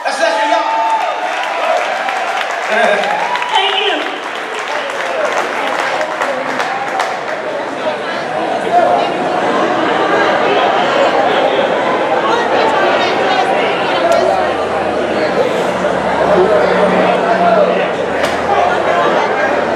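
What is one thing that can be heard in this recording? A live band plays electric guitars and keyboard.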